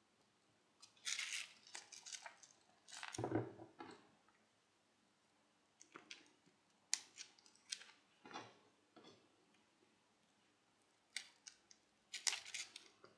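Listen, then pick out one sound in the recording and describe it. Foil ribbon crinkles and rustles softly as it is handled.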